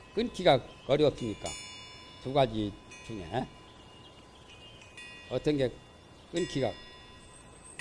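An older man speaks calmly into a microphone, lecturing with pauses.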